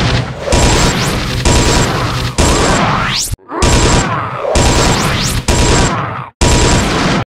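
Magic spell blasts whoosh and crackle again and again in quick bursts.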